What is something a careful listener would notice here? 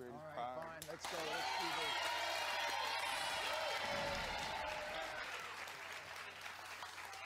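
A studio audience cheers and applauds loudly.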